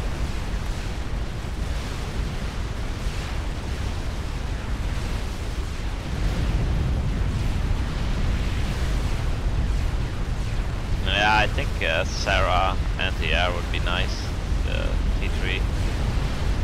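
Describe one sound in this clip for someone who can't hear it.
Explosions and gunfire rumble low and steadily in a large battle.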